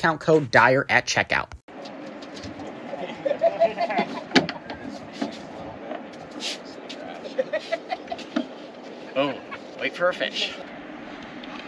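A man talks calmly outdoors, close by.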